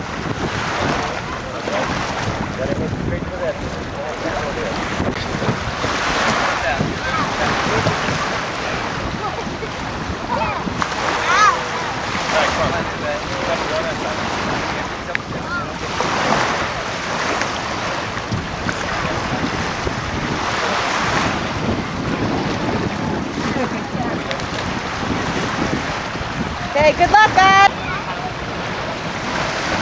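Small waves wash gently onto a beach, outdoors in light wind.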